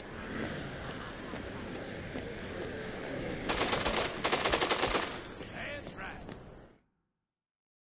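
A crowd of zombies groans and moans nearby.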